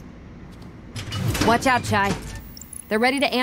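A young woman speaks urgently in a warning tone.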